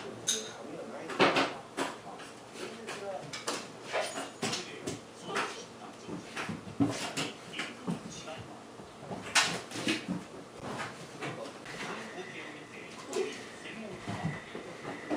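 A small dog's paws thump and patter on the floor as it jumps.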